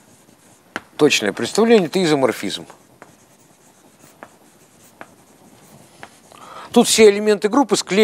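A middle-aged man speaks calmly, in a room with some echo.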